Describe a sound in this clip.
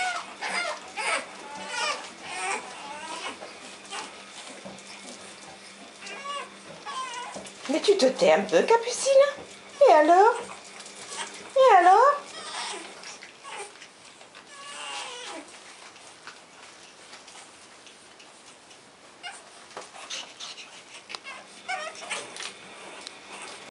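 Puppies whine and yelp in high, squeaky bursts, close by.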